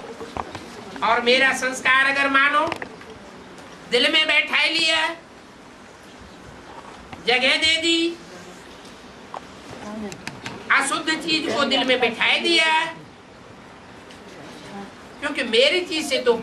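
An elderly man speaks in short bursts through a microphone.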